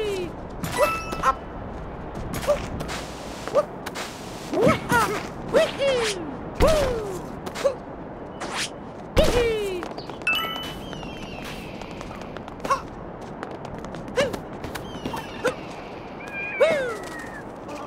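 Short springy jump sounds ring out again and again.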